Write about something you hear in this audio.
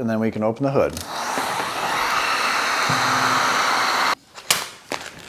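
A heat gun blows with a steady hiss.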